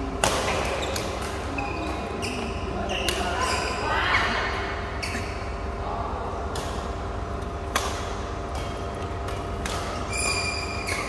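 Rackets strike a shuttlecock with sharp pops in a large echoing hall.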